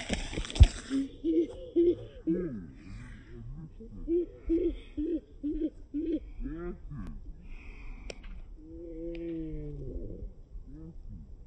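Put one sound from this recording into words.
A man shouts and laughs excitedly nearby.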